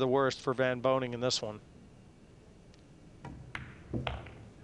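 A cue strikes a ball with a sharp click.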